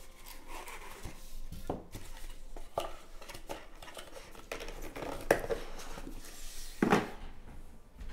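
Plastic wrapping crinkles as hands tear at a box.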